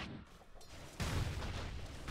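Weapons clash and thud in a brief fight.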